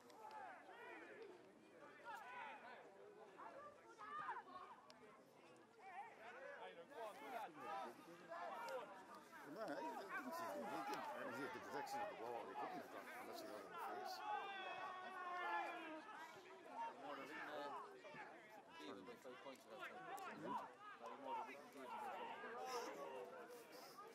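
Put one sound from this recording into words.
Men and women chat casually nearby outdoors.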